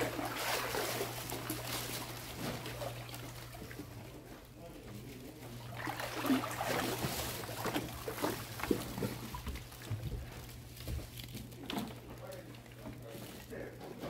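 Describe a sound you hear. Water splashes and sloshes as someone wades slowly through shallow floodwater.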